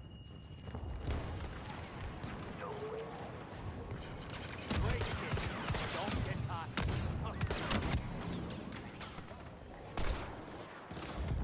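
Blaster guns fire in quick bursts.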